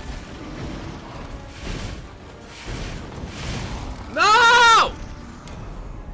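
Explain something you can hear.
Metal clashes loudly in a fight.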